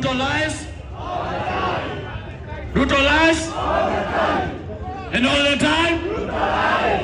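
A crowd cheers and shouts back.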